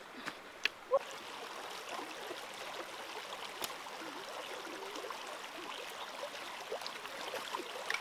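A stream trickles and babbles over rocks.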